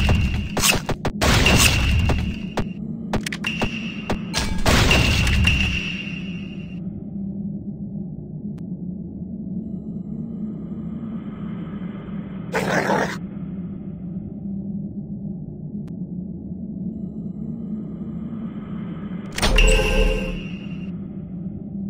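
Short electronic chimes and clicks sound from a game.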